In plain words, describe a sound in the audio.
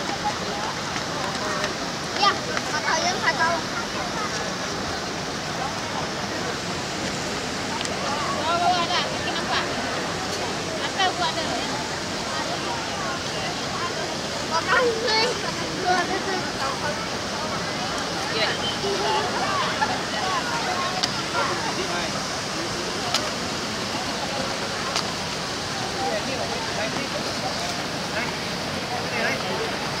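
A fountain splashes steadily nearby.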